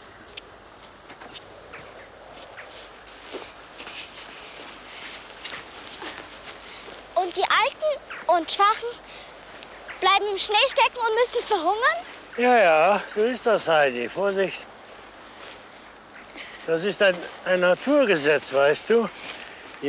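Footsteps crunch in snow.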